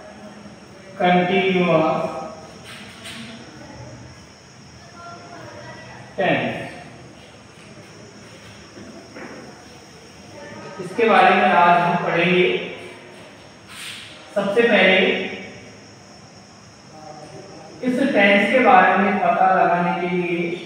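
A young man speaks calmly and clearly, in short phrases with pauses.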